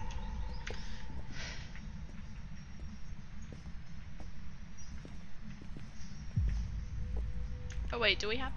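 Footsteps thud slowly on a floor.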